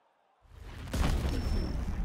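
A kick lands with a heavy thud.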